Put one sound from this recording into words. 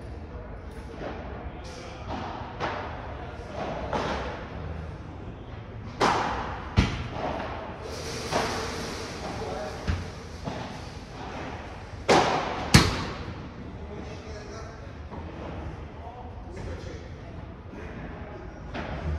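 Paddle rackets strike a ball with sharp pops in a large echoing hall.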